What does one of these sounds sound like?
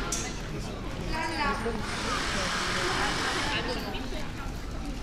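Young people chat casually nearby outdoors.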